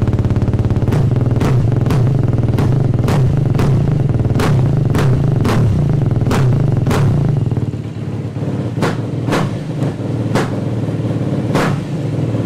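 A motorcycle engine revs in short, sharp bursts as the throttle is blipped.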